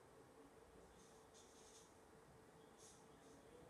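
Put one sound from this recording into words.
A pen scratches briefly on paper, close by.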